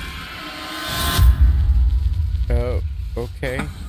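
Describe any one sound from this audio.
A magical blast booms with a deep rumble.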